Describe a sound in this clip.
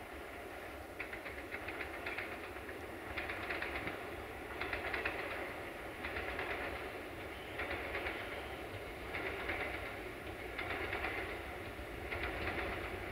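A train approaches along the tracks, its wheels clattering louder and louder.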